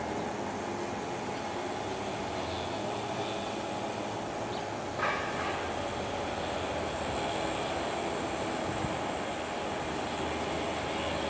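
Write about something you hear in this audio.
An electric train approaches with a steady, growing rumble.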